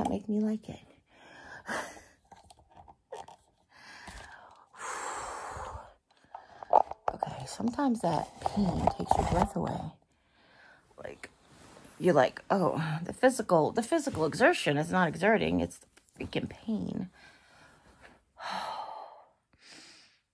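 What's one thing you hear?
A middle-aged woman talks close by with animation.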